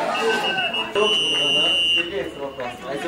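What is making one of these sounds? A referee's whistle blows a short sharp blast.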